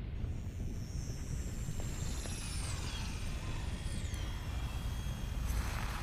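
An electric beam crackles and zaps with sweeping whines.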